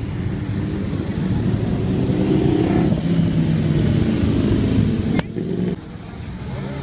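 A group of sport bikes accelerate past, engines revving.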